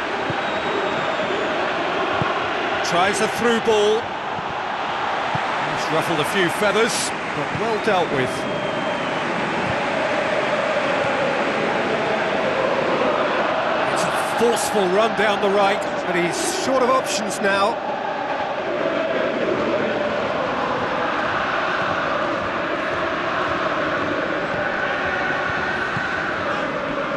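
A stadium crowd roars and chants steadily.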